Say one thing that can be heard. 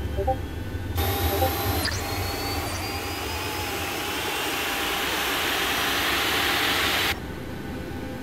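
A jet engine whines and roars as an airliner taxis nearby.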